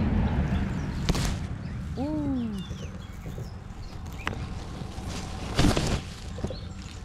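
Grass rustles and brushes close by.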